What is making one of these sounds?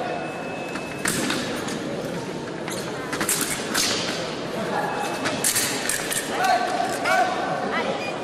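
Blades click and clash.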